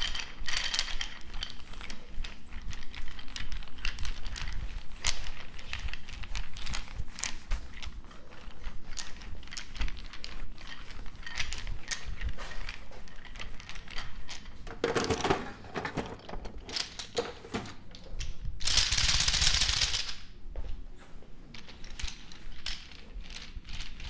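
A wooden roller massager rubs and clicks over a man's back.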